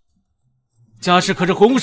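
A young man speaks loudly.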